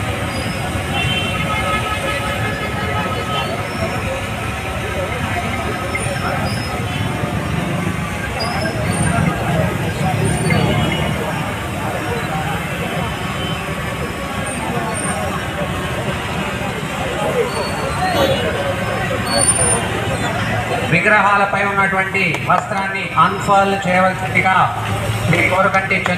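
A large outdoor crowd cheers and chatters loudly.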